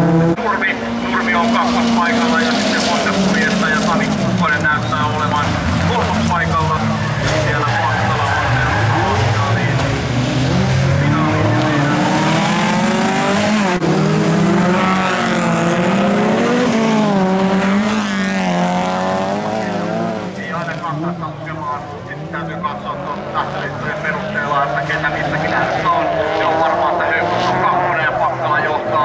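Several race car engines roar and rev loudly, rising and falling in pitch.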